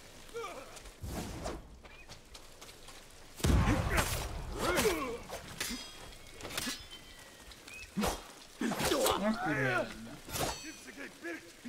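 Swords clash and ring sharply.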